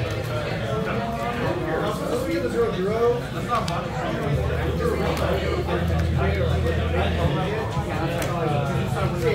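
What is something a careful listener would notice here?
Playing cards rustle and slide softly against each other in a player's hands.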